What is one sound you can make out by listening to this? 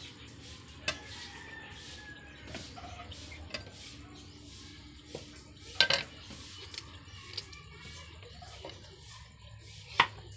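A knife chops vegetables on a cutting board with sharp knocks.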